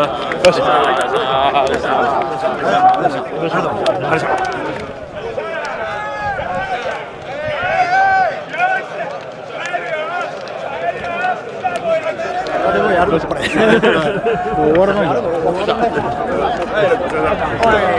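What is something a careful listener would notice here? Hands slap in quick high fives.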